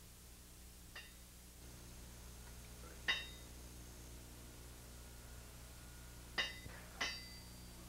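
A hammer taps a metal punch, ringing sharply a few times.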